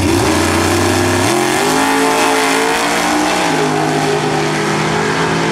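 Two drag racing cars roar off down the track and fade away.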